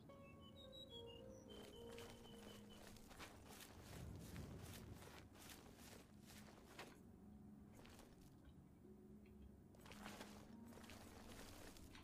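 Footsteps tread on stone and grass.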